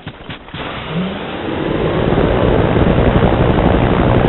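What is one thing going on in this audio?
A helicopter's rotor whirs loudly and steadily.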